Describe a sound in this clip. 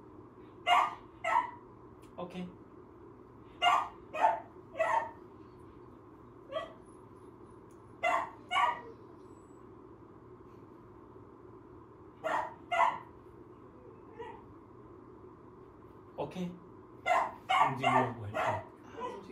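A man speaks to a dog nearby in short, firm words.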